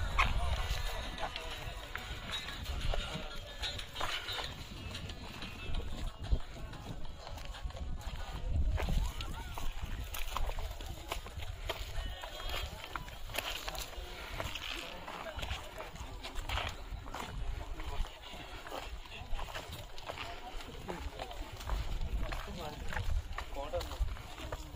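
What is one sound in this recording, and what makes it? Men talk nearby and in the distance.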